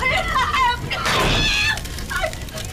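A woman screams in fright.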